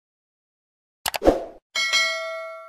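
A mouse clicks sharply.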